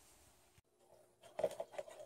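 Dry spaghetti sticks rattle against a plastic bowl.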